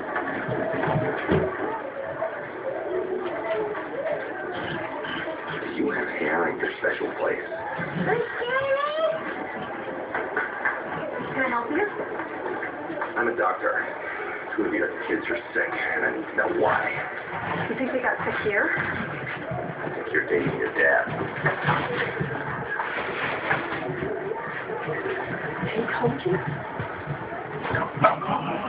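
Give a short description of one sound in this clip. Dogs growl and bark playfully close by.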